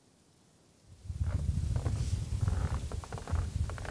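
Footsteps crunch on snowy wooden steps close by.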